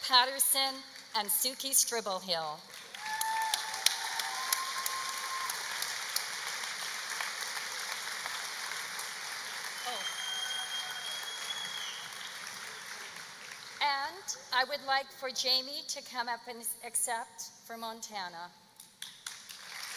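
A woman speaks calmly through a loudspeaker in a large echoing hall.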